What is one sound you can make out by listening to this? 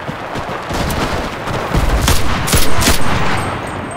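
A rifle fires loud shots close by.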